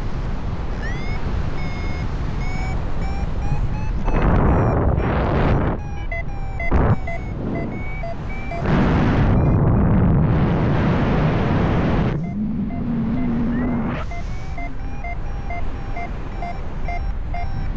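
Wind rushes loudly past, outdoors high in the air, in gusts.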